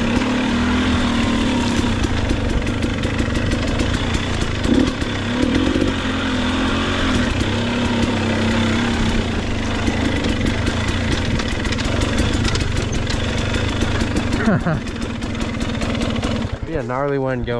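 A dirt bike engine roars and revs.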